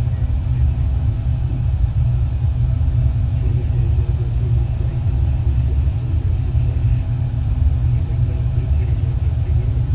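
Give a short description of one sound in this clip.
A low engine drone rumbles steadily.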